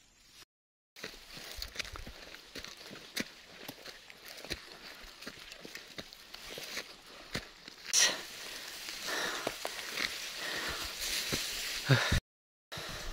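Dry grass rustles and brushes close by.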